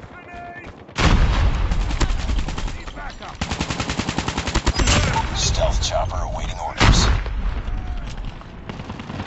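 A rifle fires rapid bursts, loud and close.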